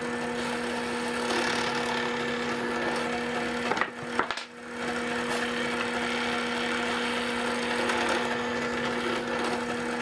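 A drill bit bores into wood.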